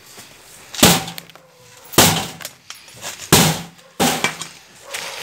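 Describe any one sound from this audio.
A man bangs hard on a metal gate several times.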